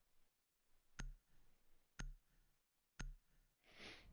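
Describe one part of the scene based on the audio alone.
A countdown timer ticks three times with sharp clicks.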